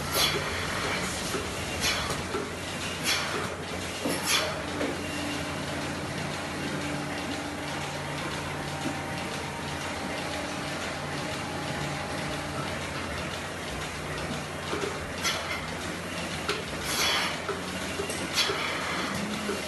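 Air hisses sharply from milking cups in short bursts.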